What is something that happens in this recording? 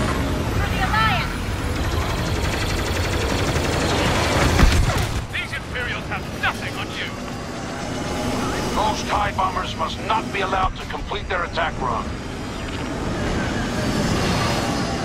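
Spaceship engines roar steadily.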